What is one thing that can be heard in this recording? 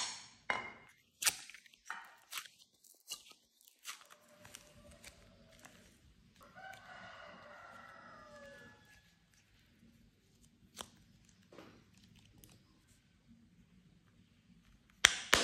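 A plastic mould clicks and taps.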